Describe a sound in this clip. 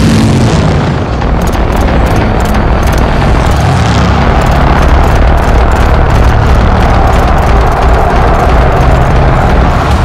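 A flying craft's engine roars with a deep, steady rumble.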